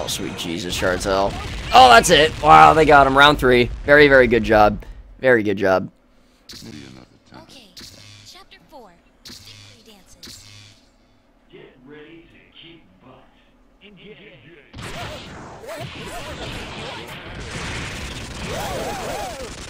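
Blasts burst with loud booms.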